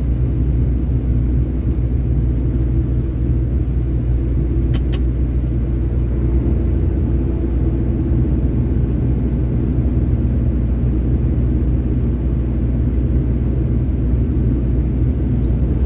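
A vehicle's engine rumbles steadily from inside as it drives along a road.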